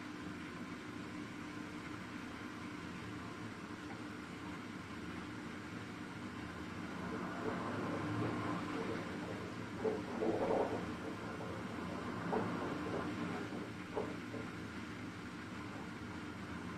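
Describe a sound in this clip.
A washing machine drum turns with a steady hum.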